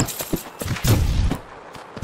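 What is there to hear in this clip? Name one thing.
A blade slashes with quick, sharp swishes.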